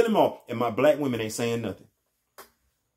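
A middle-aged man speaks close to a microphone in a calm, deep voice.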